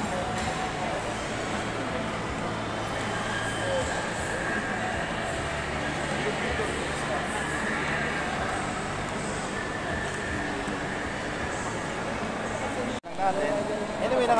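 A crowd chatters in a large echoing hall.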